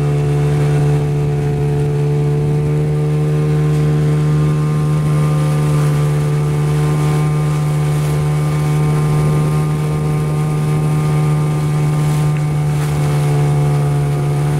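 Waves splash against a small boat's hull.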